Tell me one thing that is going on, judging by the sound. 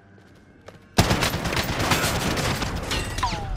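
Loud gunfire bursts out close by.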